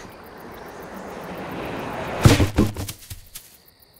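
A large bird thuds onto hard ground.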